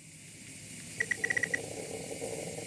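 Short electronic blips chirp in quick succession.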